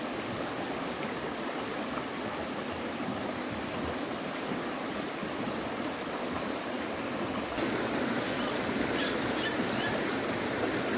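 A shallow stream gurgles and splashes over rocks.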